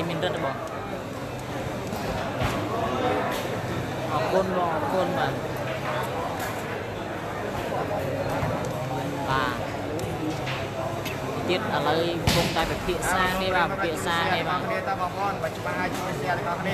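A large crowd chatters and shouts throughout a big echoing hall.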